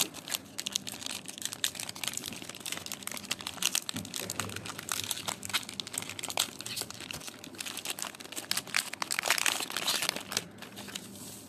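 A plastic wrapper crinkles and rustles up close.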